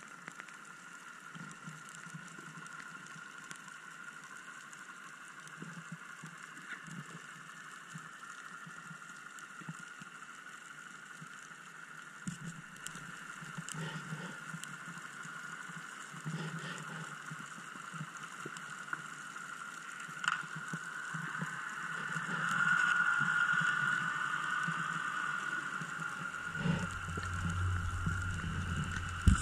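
Muffled underwater noise hisses and crackles steadily.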